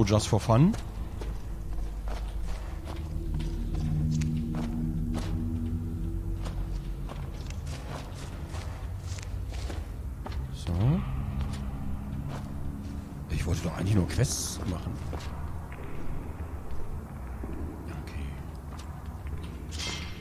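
Footsteps crunch steadily on dirt and gravel.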